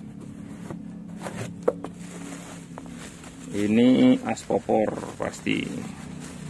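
Plastic bubble wrap crinkles and rustles.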